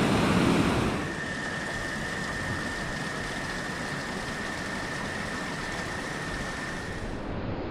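A small stream trickles over rocks.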